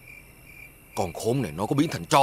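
An elderly man speaks sternly, close by.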